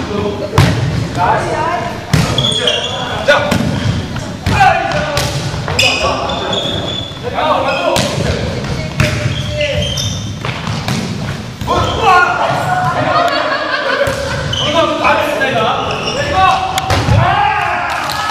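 Several men and women call out and chatter with animation in a large echoing hall.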